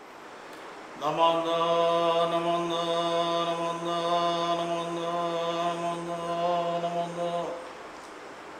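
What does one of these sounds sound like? A man chants a single long, steady note close by.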